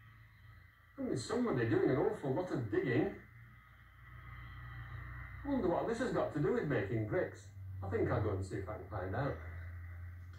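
An elderly man speaks calmly through a television speaker.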